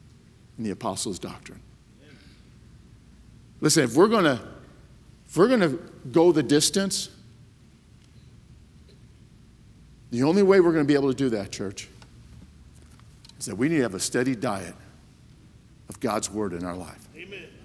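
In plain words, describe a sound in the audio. A middle-aged man speaks with emphasis through a microphone in a large room, pausing between phrases.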